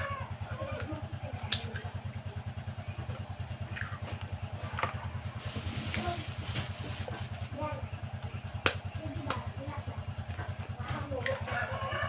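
An egg cracks against a metal bowl.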